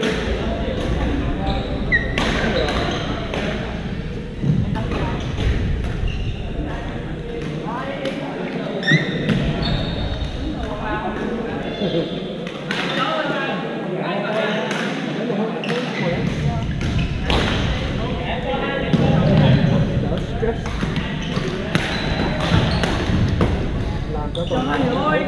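Badminton rackets strike shuttlecocks with sharp pops in a large echoing gym.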